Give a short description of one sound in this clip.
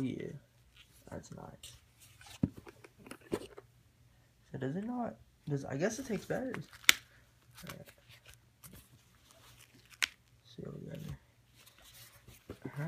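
Headphones click and rustle as a hand handles them on soft fabric.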